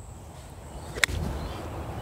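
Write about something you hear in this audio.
A golf club strikes a ball off the grass.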